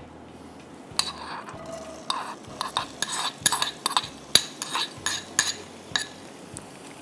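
Chopped onions drop into a hot pan and sizzle.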